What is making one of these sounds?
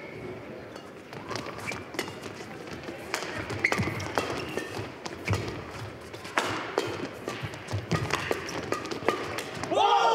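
Shuttlecocks are struck sharply by rackets in a fast rally.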